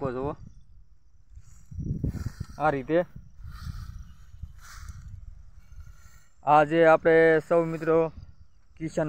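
A man speaks calmly close by, outdoors.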